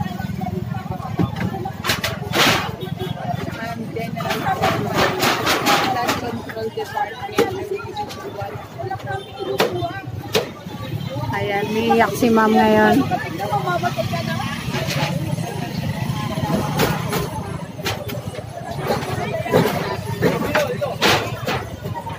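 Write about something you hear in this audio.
Wood and metal bang and clatter as a stall is pulled apart.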